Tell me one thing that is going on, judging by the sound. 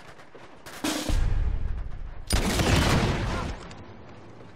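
Gunshots bang loudly in quick bursts.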